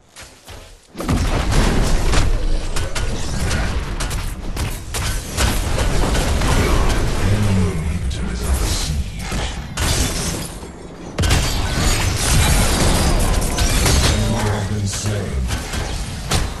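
Loud game blasts, explosions and crackling electric zaps burst one after another.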